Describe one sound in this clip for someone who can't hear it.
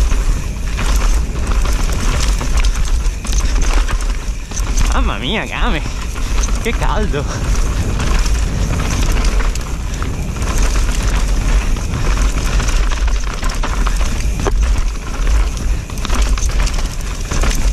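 Bicycle tyres crunch and rattle over a rocky dirt trail.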